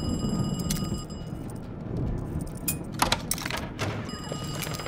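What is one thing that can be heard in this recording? A lock clicks open.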